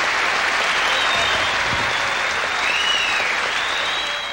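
A crowd cheers and whistles in a large hall.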